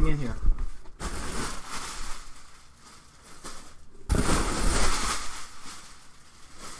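Plastic wrapping rustles and crinkles loudly.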